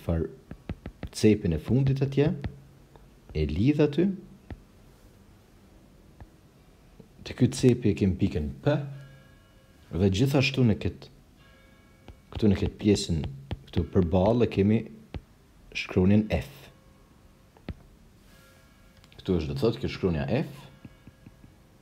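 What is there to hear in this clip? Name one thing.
A man explains calmly through a close microphone, in short phrases with pauses.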